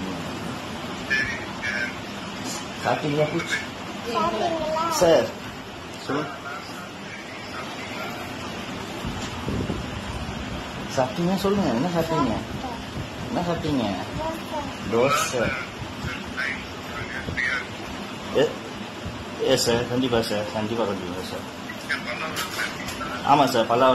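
Young people talk with animation close by.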